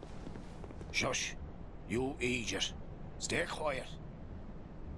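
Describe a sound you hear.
A man speaks in a hushed, urgent voice.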